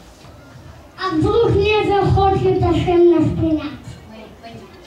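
A young boy sings loudly into a microphone in an echoing hall.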